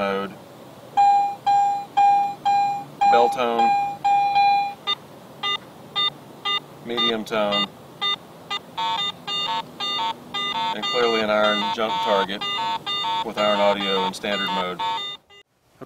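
A metal detector gives short, repeated electronic beeps.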